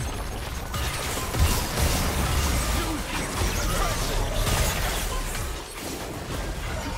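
Magic spells crackle and boom in a battle game.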